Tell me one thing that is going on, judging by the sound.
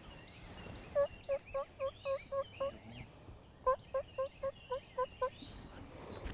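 A turkey yelps in short repeated calls.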